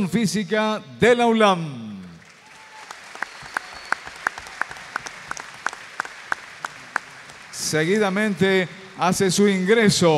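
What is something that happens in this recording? A large crowd sings together in an echoing hall.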